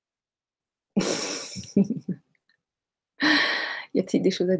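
A middle-aged woman laughs softly.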